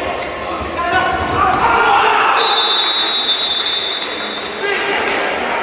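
A crowd cheers loudly after a goal.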